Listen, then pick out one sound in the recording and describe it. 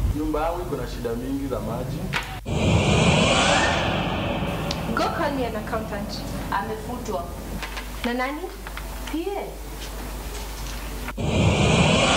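A young woman speaks with emotion close by.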